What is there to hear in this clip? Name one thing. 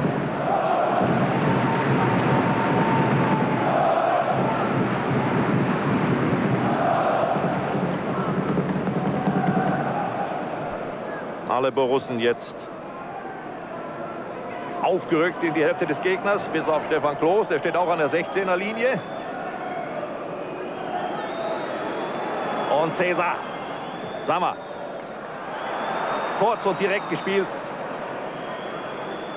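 A large stadium crowd chants and roars, loudest at first and then quieter.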